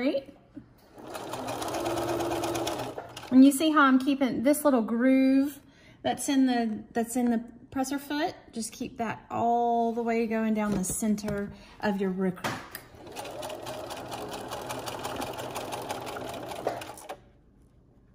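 A sewing machine runs with a steady whirr.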